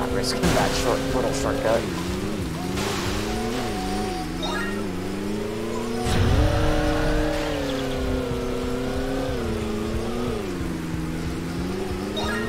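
Water splashes and sprays under a jet ski.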